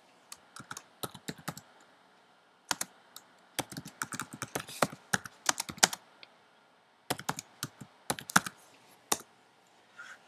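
Keys on a keyboard click in quick, uneven bursts.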